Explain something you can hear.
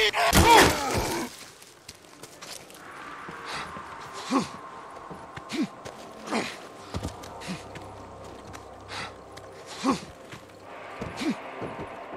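Footsteps crunch on gravel and wooden planks.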